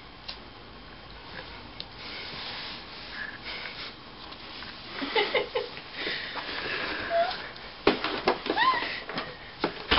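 A baby rustles and bumps around inside a cardboard box.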